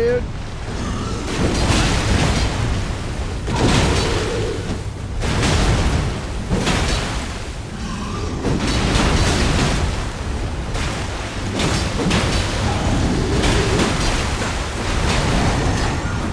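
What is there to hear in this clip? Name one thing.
Heavy blows crash and thud in a fierce fight.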